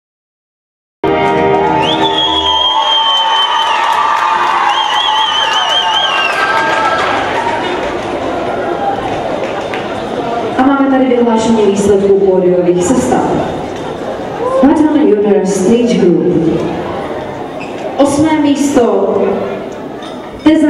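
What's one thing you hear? A large crowd cheers and chatters in an echoing hall.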